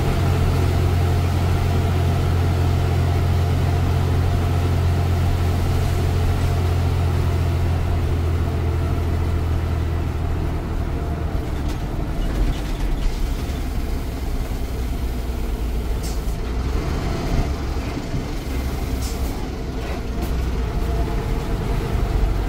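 A bus engine drones loudly and steadily from inside the cab.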